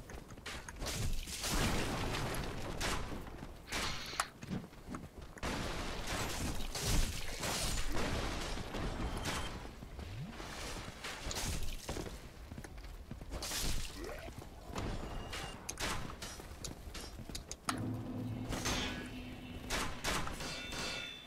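Swords clash and strike in a fast, noisy fight.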